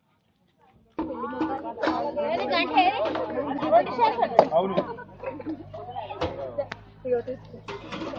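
Several people talk over one another nearby.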